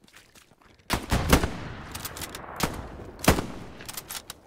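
Gunshots crack sharply.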